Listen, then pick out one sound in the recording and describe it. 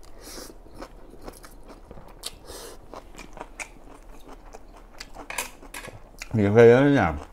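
A man slurps noodles and chews noisily, close to a microphone.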